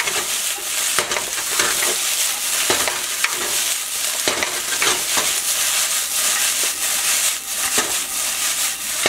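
Rice sizzles and crackles in a hot pan.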